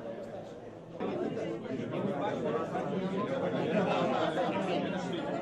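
A crowd of people talks at once in a room.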